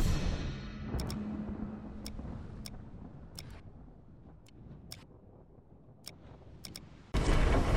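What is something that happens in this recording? Short menu clicks sound one after another.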